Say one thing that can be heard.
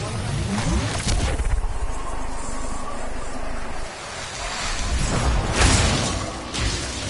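A loud blast roars and rumbles.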